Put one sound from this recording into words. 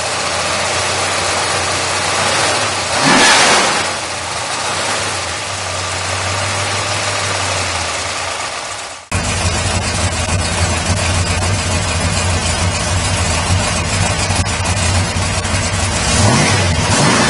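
A car engine idles with a steady, deep rumble.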